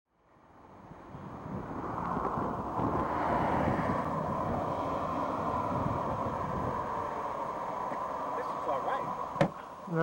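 A car engine hums steadily as the car rolls to a stop.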